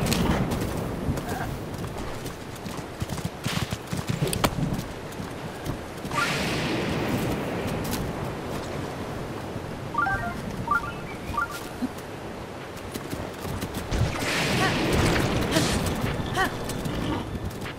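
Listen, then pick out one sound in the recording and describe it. Hooves thud steadily as a horse gallops over soft ground.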